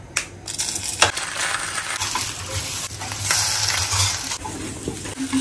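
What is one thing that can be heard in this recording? Eggs sizzle in a hot frying pan.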